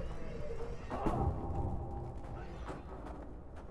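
An axe chops into wood.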